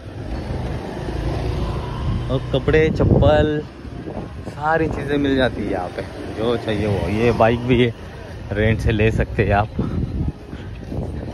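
A motor scooter engine putters close by as the scooter rides past.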